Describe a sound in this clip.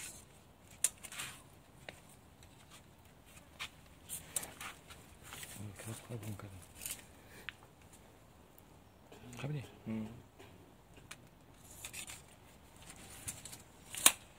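Plastic mesh rustles and crinkles as it is handled.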